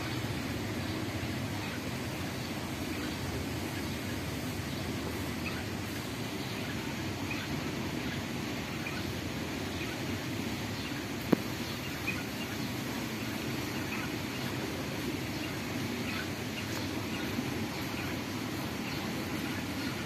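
A young bird chirps faintly now and then.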